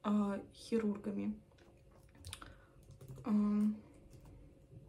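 A young woman speaks calmly and close by into a microphone.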